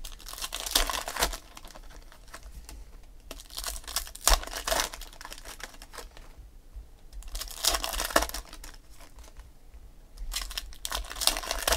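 Foil wrappers crinkle and tear in bursts close by.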